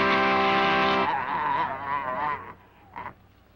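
A young woman makes a loud, silly drawn-out noise.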